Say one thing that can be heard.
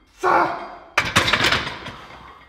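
A loaded barbell clanks down onto the metal rack.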